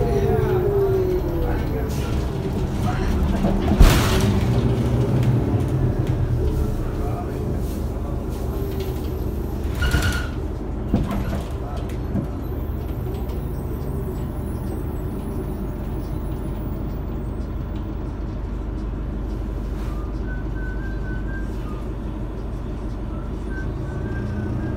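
A bus engine rumbles low and steady from inside the cabin.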